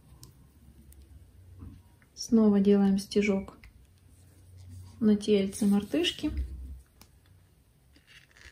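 A needle pulls yarn softly through a crocheted toy.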